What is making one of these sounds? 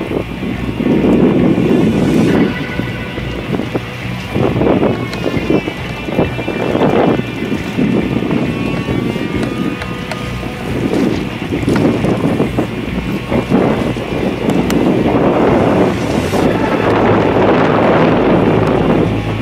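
Wind gusts loudly across open water.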